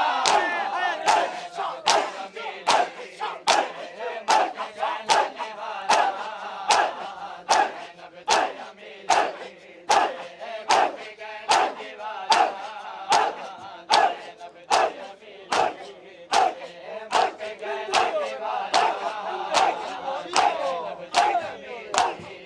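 A crowd of men chant loudly together between the beats.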